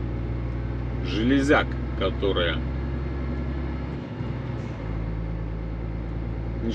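A vehicle's engine hums steadily from inside the cab.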